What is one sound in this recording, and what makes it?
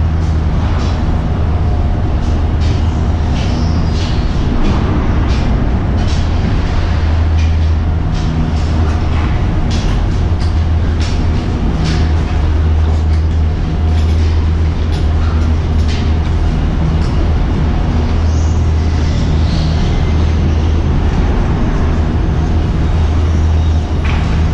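Gondola station machinery hums steadily and loudly.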